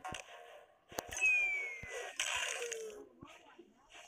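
A game's cartoon crash sounds out loudly.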